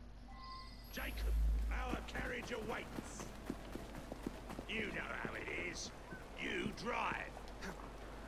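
Footsteps walk over stone paving.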